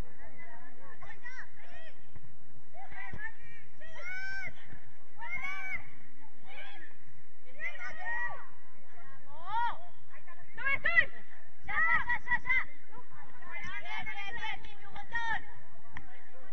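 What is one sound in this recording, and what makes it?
Young girls shout and call out to one another across an open outdoor field.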